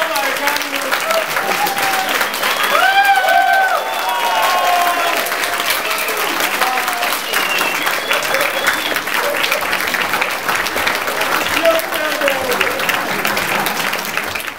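Voices of a crowd whoop and shout excitedly.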